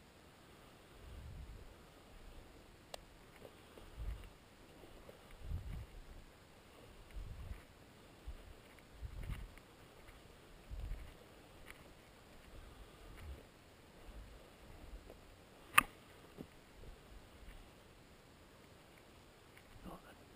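Footsteps crunch slowly over dry leaves and grass outdoors.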